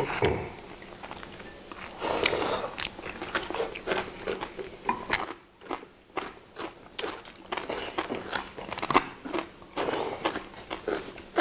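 People chew and slurp food loudly, close up.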